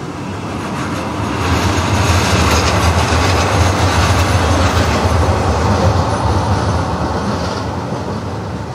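A tram approaches and passes close by with a deep rumble.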